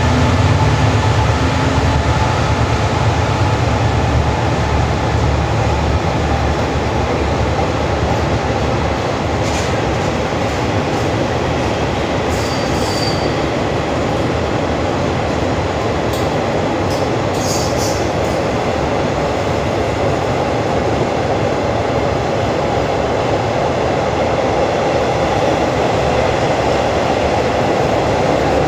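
A long train rolls by, its wheels clattering and rumbling on the rails in an echoing underground hall.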